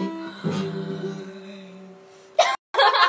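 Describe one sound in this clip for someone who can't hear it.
An acoustic guitar chord rings out and fades.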